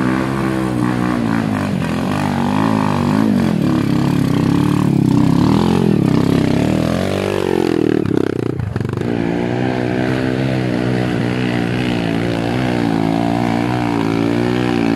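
A dirt bike engine revs hard and rises and falls in pitch up close.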